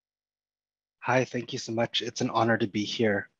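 A man speaks calmly and clearly over an online call.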